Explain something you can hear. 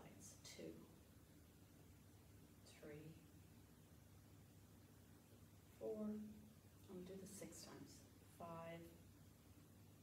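A young woman speaks calmly and clearly, close by, with short pauses between phrases.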